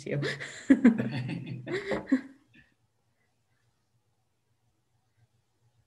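An older man laughs softly.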